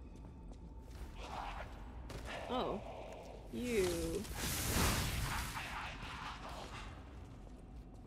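A sword swings and strikes in quick slashes.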